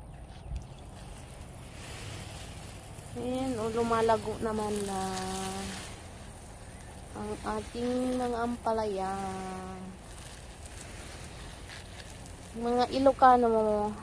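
Water sprays from a hose and patters onto soil and leaves.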